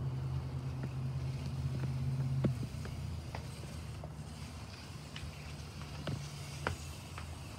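A wicker basket creaks and rustles as it is handled.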